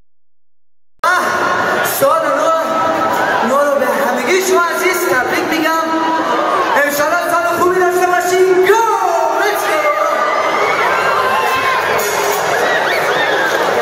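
A man sings through loudspeakers.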